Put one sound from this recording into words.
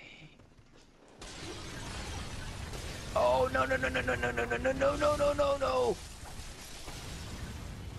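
A blade slashes and clangs in a fight.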